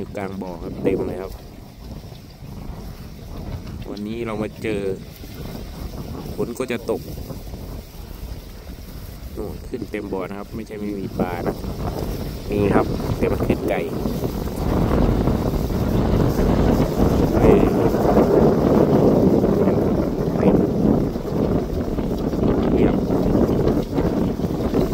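Wind blows hard across open water and grows stronger.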